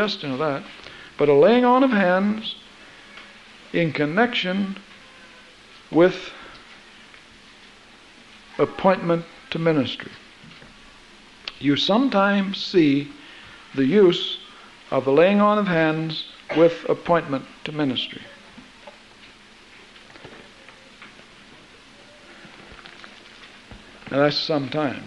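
A middle-aged man sings in phrases with a wavering voice.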